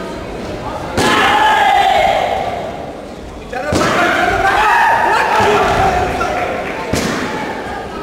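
A taekwondo kick thuds on a padded chest protector.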